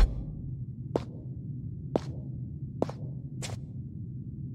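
Footsteps tap on a hard floor at an even pace.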